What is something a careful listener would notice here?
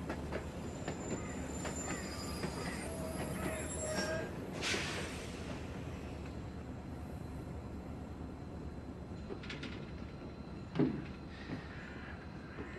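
A diesel locomotive rumbles as it approaches along the tracks.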